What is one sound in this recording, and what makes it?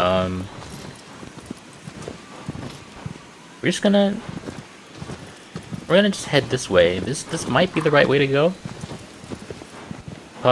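A horse's hooves thud softly on a dirt path.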